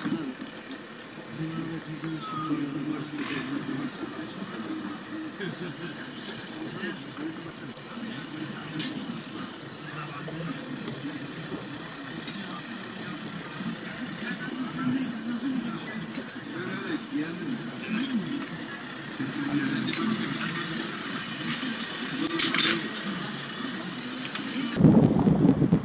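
Men talk calmly nearby outdoors.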